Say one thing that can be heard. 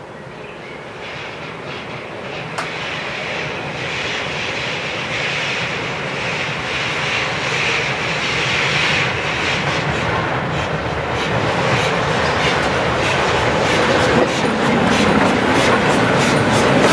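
A steam locomotive chuffs steadily as it approaches, growing louder.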